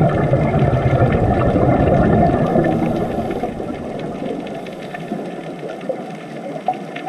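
Scuba bubbles gurgle and rumble underwater, growing quieter.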